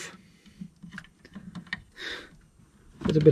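Plastic-coated wires rustle and click as hands handle them.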